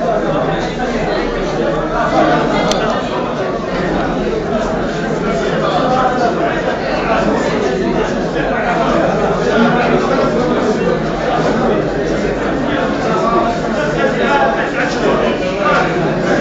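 A crowd of men talks over one another.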